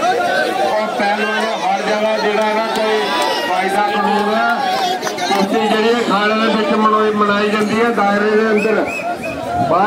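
A man calls out loudly nearby, as if announcing.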